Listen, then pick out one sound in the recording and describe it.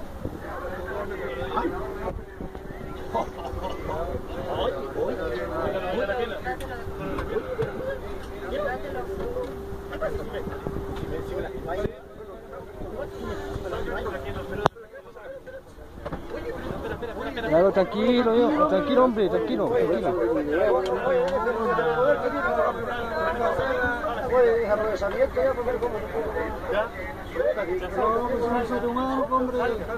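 Several men and women talk over one another nearby.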